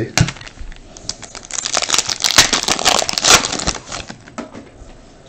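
A card pack's foil wrapper crinkles and tears as hands open it.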